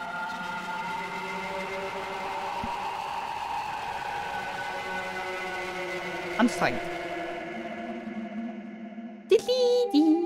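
Steady electronic game music plays.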